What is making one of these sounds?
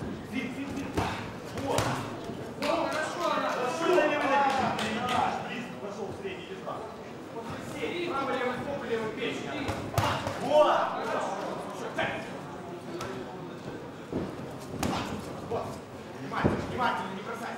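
Boxing gloves thud against bodies in quick blows.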